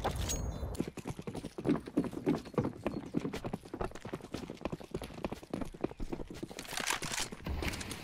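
Footsteps tread on stone at a steady pace.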